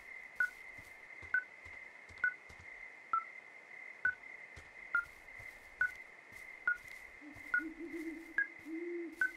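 A tracking device beeps at a steady, quick pace.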